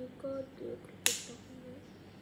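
A small plastic toy clicks sharply in a child's hands.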